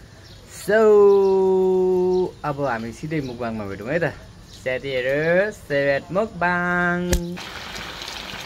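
A young man sings loudly and drawn out, close by.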